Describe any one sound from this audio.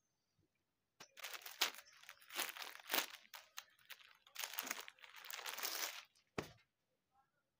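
A plastic wrapper crinkles loudly as hands handle it.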